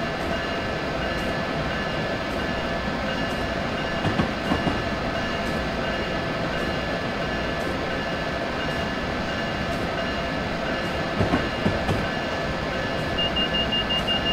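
A train engine hums and rumbles steadily as it runs along the track.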